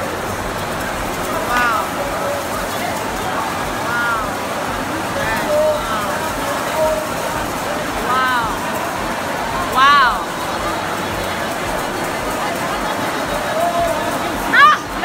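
A large crowd murmurs and chatters under a wide echoing roof.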